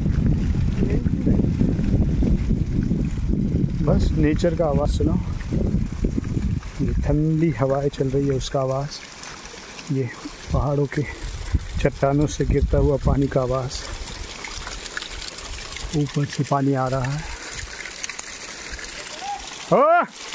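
Water trickles and splashes down a rock face.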